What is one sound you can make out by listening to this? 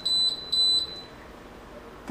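An electronic appliance beeps as its buttons are pressed.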